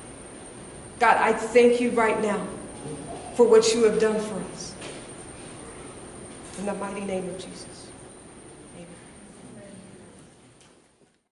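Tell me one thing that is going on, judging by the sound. A young woman speaks calmly and clearly into a microphone in an echoing room.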